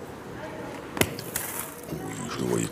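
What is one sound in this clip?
A metal ball thuds onto gravel.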